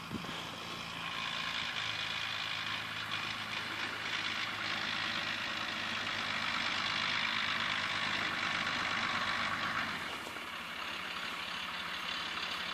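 An off-road truck's engine roars as it drives closer.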